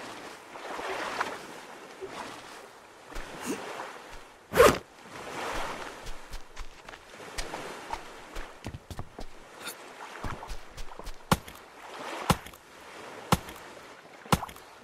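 Waves wash softly onto a shore.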